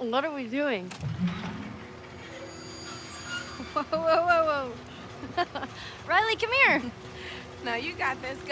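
A carousel's motor hums steadily.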